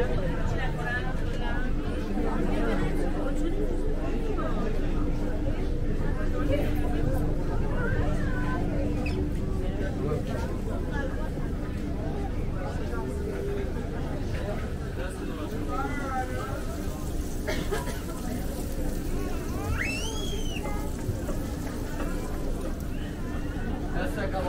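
A crowd of people chatters all around, outdoors.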